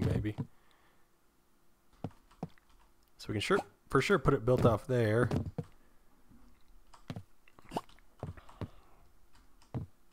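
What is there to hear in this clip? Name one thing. Wooden blocks knock into place with short hollow thuds.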